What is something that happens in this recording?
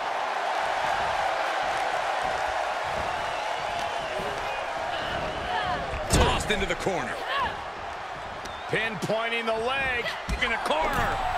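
A large arena crowd cheers and roars.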